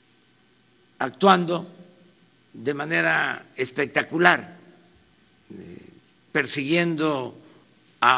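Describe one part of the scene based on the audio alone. An elderly man speaks with emphasis into a microphone, in short bursts with pauses.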